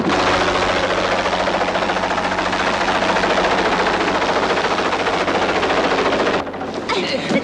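A helicopter roars loudly overhead.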